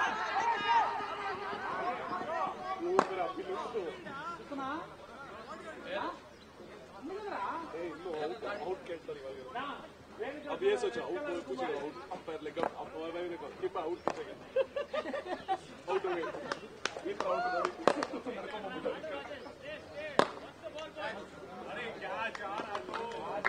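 Men on the field talk and call out to each other outdoors.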